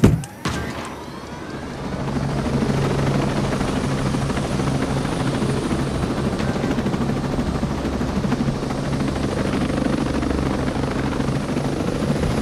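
A military transport helicopter drones in flight, its rotor thumping over a turbine whine.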